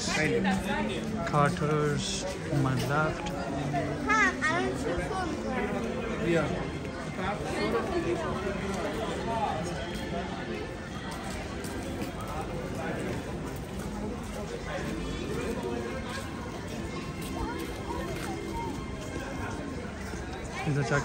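A crowd of men and women chatter nearby, outdoors.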